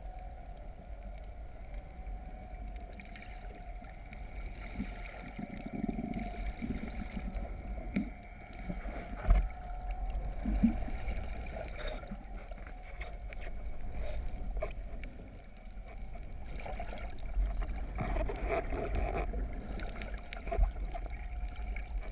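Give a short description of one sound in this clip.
Water swishes and gurgles in a muffled underwater rush.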